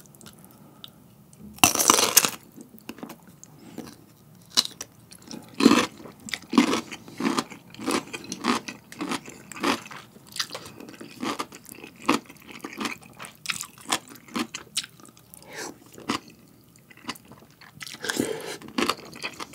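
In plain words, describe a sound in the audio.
A man bites into crunchy food and chews wetly, close to a microphone.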